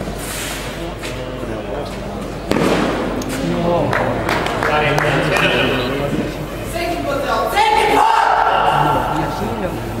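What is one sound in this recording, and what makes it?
Rackets strike a tennis ball back and forth in a rally.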